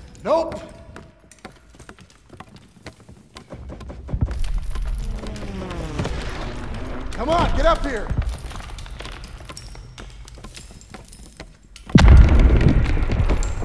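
Hands grip wooden rungs as a ladder is climbed.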